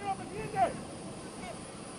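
A man shouts a loud command outdoors.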